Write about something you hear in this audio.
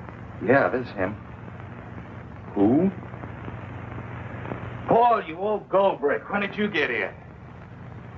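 A man speaks tensely into a telephone, close by.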